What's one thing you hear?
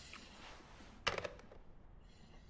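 A telephone receiver is set down with a clunk.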